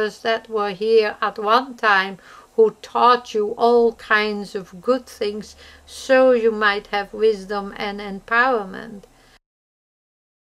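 An elderly woman speaks calmly and closely into a microphone.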